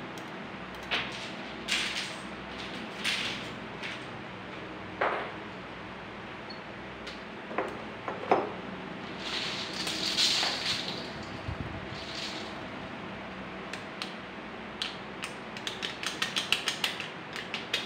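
Thin aluminium pieces crinkle and rattle in the hands.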